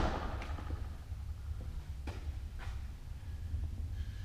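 Footsteps walk across a hard floor.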